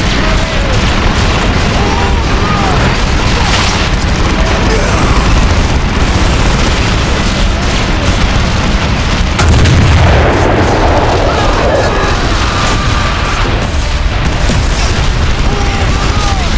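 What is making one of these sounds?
Gunfire crackles and bursts in a battle.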